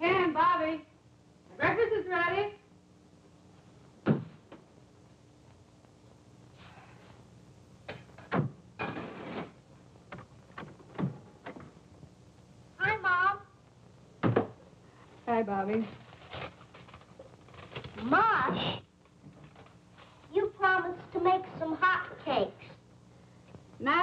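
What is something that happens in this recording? A woman speaks nearby in a calm, conversational voice.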